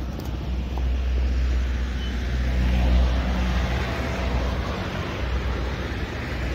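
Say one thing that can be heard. A pickup truck drives past on the road.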